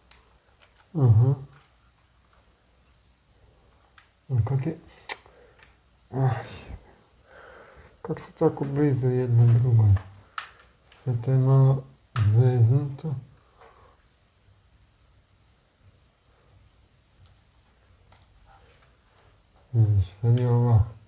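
A man talks in short bursts close by.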